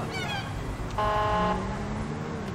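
A police siren chirps briefly.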